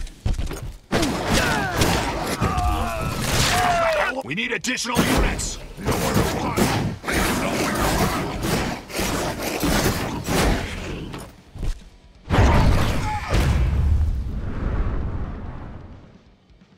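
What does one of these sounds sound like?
A monster roars and snarls.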